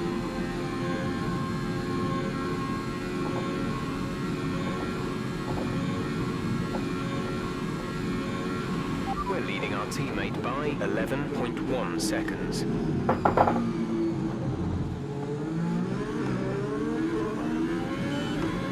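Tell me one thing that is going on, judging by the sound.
A racing car engine screams at high revs, dropping in pitch as it brakes and shifts down, then rising again.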